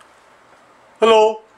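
A man starts speaking calmly close by.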